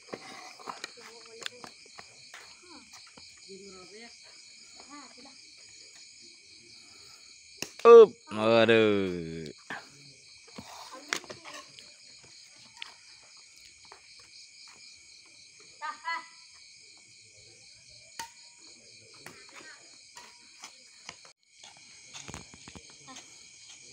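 A racket strikes a shuttlecock with sharp pops, back and forth.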